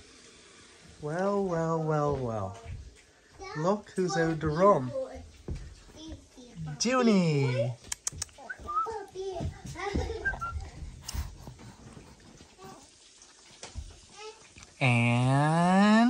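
A young woman talks to a baby in a bright, sing-song voice nearby.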